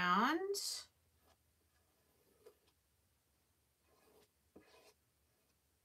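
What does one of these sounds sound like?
Fingers press and rub tape softly onto a wooden surface.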